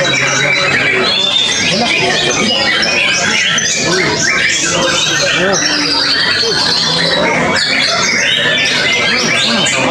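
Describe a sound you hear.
A caged bird sings loud, rapid chirps and whistles.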